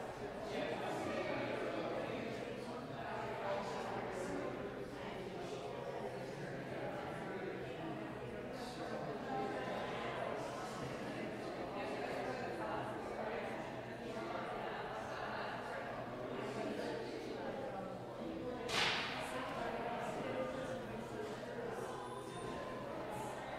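A woman talks calmly nearby in a large echoing hall.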